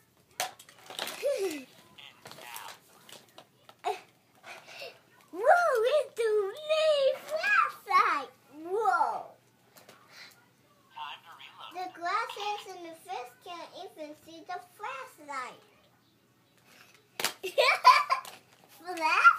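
A young girl talks and sings playfully close by.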